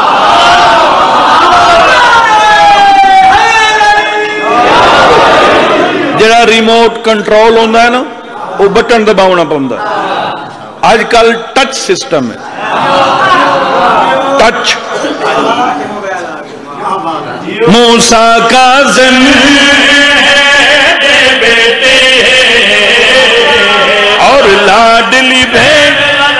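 A man chants loudly and with emotion into a microphone, heard through loudspeakers.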